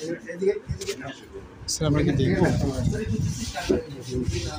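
Cardboard boxes rustle and knock as they are handled.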